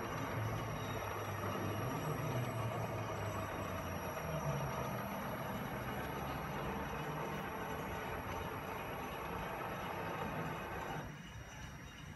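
A small electric motor whirs steadily as it drives a carriage along a screw rail, then stops.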